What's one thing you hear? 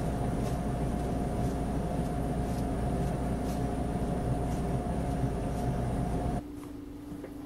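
Footsteps walk steadily along a hard floor in an echoing hallway.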